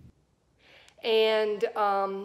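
A woman speaks close to a microphone with animation.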